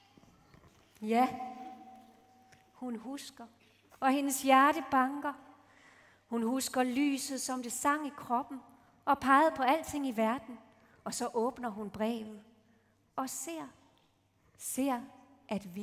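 A young woman sings a slow melody in short phrases through a microphone.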